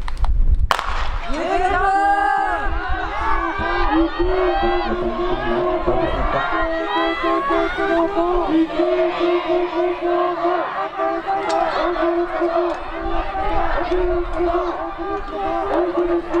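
A crowd of spectators cheers and shouts from a distance.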